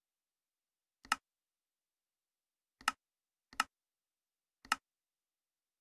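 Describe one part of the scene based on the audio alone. Game menu buttons click sharply, a few times.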